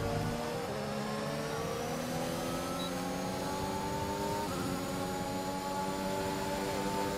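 A racing car engine whines loudly, rising in pitch and dropping briefly as it shifts gear.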